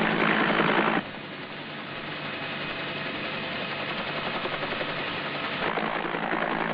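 A motorcycle engine revs over rough ground.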